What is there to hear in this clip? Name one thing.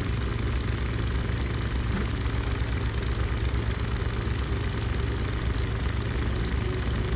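Water splashes and churns behind a moving boat.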